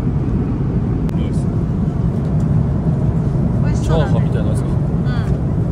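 A steady low roar of aircraft engines fills the cabin.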